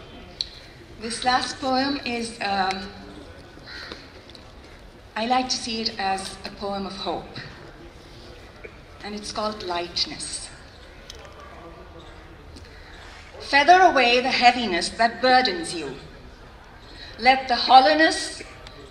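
A young woman reads out poetry into a microphone, in short bursts with pauses.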